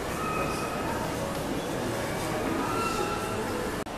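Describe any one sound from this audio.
A young girl's footsteps tap on a hard tiled floor.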